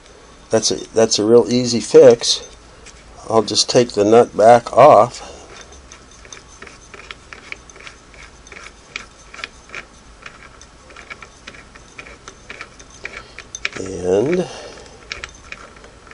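Small plastic parts click and tap softly.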